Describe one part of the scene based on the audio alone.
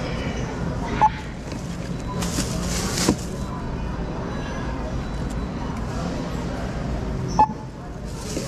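A self-checkout scanner beeps.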